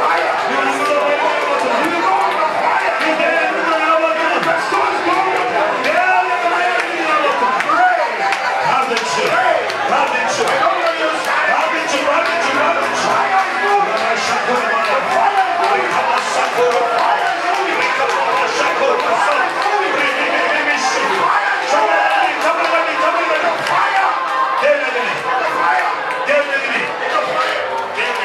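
A crowd of men and women pray aloud together at once.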